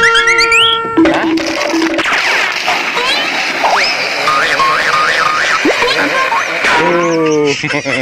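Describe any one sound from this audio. Children slide down a concrete slope with a rough scraping sound.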